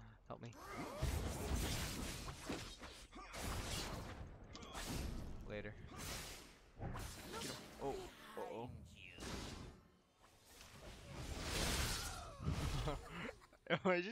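Game fighting sounds clash and burst.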